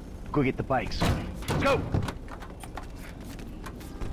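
Car doors open.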